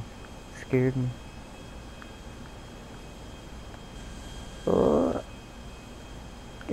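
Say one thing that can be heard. A plane's engines drone steadily.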